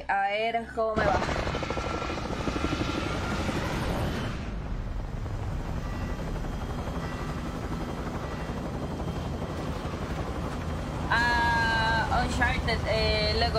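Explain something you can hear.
Helicopter rotors thump steadily.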